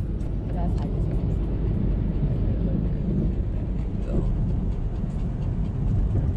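A young woman speaks softly up close.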